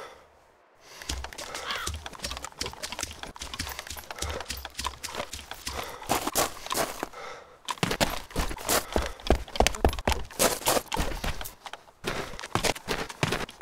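Footsteps tread steadily over grass and gravel, then onto a hard floor.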